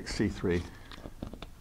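A chess piece clicks onto a wall board.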